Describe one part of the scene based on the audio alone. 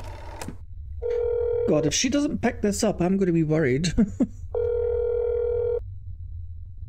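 A telephone ring tone buzzes twice through a handset.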